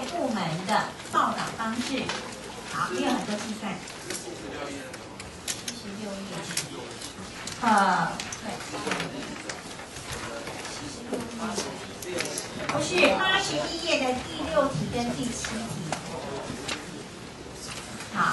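A woman speaks calmly through a microphone, heard over loudspeakers in a large room.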